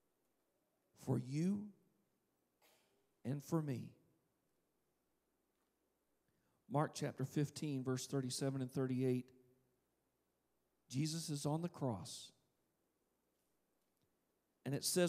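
A man speaks in slow, separate phrases through a microphone in a large hall.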